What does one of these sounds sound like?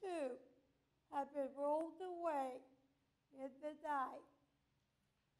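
A man speaks in short, sing-song bursts.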